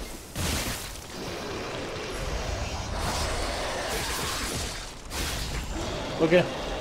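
Weapons clash and bursts crackle in a fight.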